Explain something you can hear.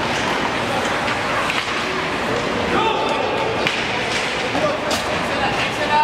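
Young players call out in a large echoing arena.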